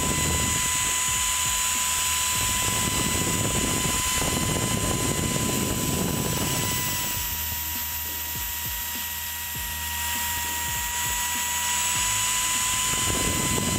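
A router bit grinds and scrapes as it cuts into plastic.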